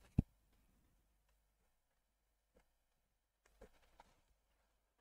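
A brush dabs softly on canvas.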